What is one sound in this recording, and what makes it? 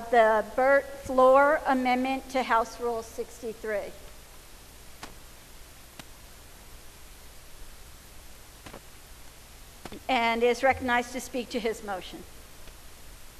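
A middle-aged man speaks calmly into a microphone in a large echoing hall.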